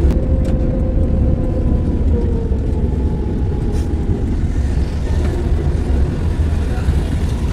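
A car engine hums and road noise rumbles, heard from inside the car as it drives along a road.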